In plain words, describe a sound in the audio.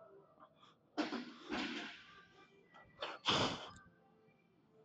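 A man breathes out hard with effort.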